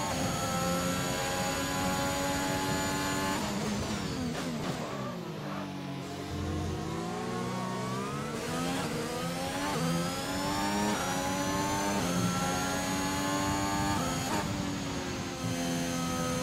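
A racing car engine screams at high revs, dropping in pitch while braking and rising again as it speeds up.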